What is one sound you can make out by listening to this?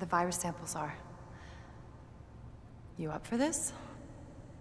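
A young woman speaks softly and closely.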